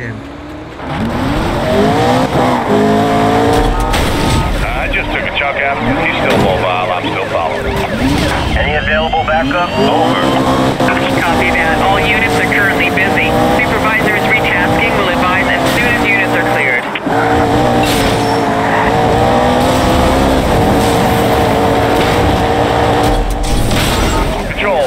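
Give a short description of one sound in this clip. A sports car engine roars and revs up and down as it speeds along.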